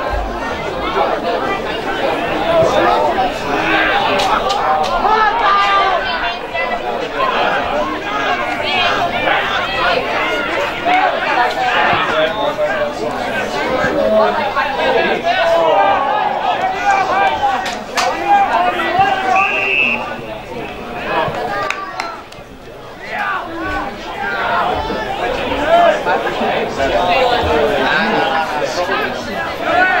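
Men and women in a crowd of spectators chatter and call out close by, outdoors.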